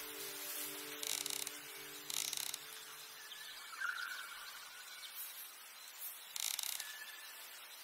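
Puzzle tiles swish as they turn into place.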